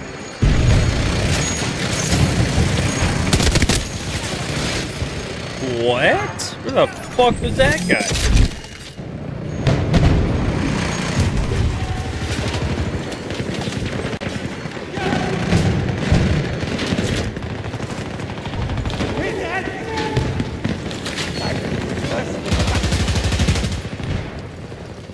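Rapid gunfire from a video game rattles and booms.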